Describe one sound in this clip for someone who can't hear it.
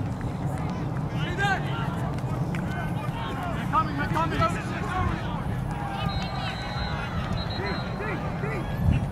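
Young men shout and call to each other across a field in the distance.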